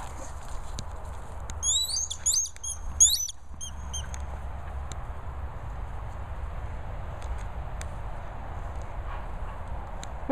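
A dog runs through grass.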